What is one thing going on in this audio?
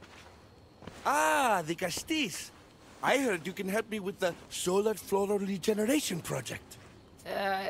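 A man speaks cheerfully and with animation, close by.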